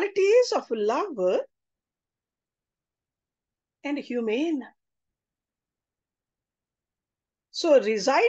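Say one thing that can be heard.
A middle-aged woman speaks calmly in short phrases over an online call, with pauses.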